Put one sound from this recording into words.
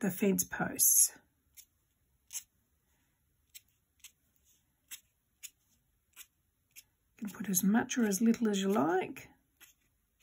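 A marker tip dabs in short strokes on card.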